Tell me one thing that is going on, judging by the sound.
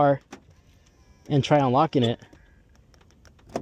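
A car door handle clicks as a hand pulls it.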